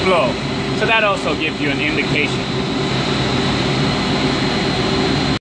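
A pump hums steadily nearby.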